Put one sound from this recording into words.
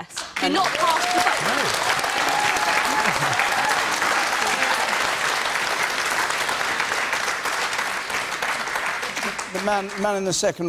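A large audience applauds and cheers loudly in a big hall.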